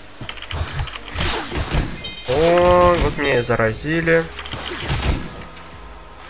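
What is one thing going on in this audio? Sword slashes strike a creature in quick succession.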